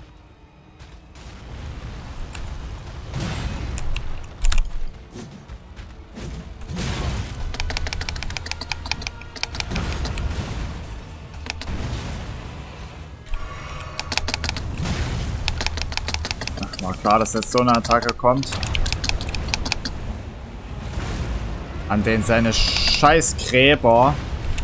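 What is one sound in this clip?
Heavy blows and metal clashes ring out in a fierce fight.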